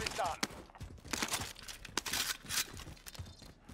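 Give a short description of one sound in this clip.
A rifle is handled and reloaded with sharp metallic clicks.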